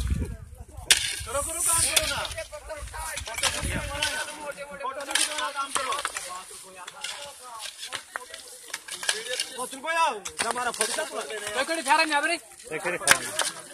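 Several men talk loudly nearby, outdoors.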